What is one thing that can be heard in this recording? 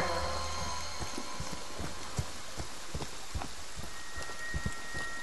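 Heavy footsteps thud steadily on a dirt path.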